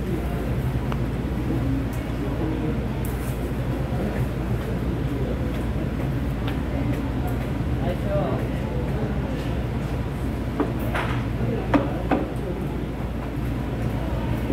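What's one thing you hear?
Chopsticks and spoons clink against plates and bowls.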